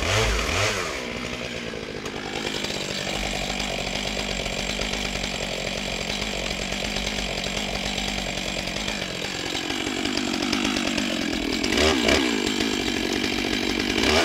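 A chainsaw idles steadily with a low rattle.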